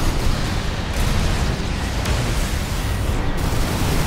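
Electric crackling bursts.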